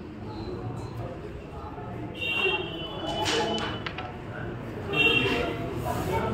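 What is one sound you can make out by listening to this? A crowd of people murmurs and chatters nearby.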